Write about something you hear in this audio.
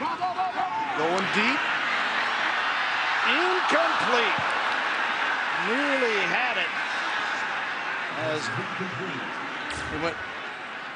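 A large stadium crowd cheers and roars loudly, then slowly fades.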